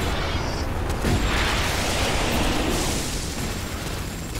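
A missile whooshes and explodes.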